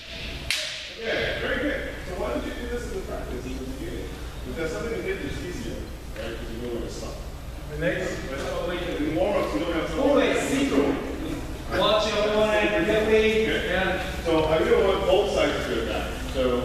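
Fencers shout loudly and sharply in a large echoing hall.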